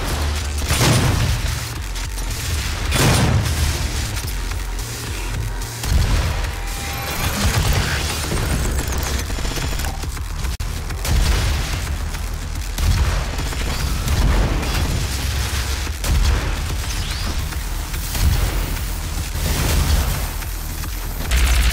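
Shotgun blasts boom in quick bursts.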